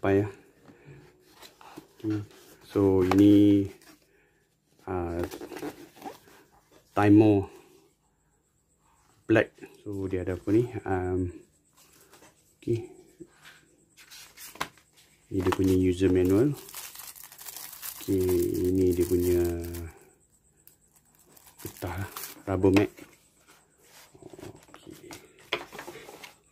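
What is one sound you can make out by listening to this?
A cardboard box is handled and tapped.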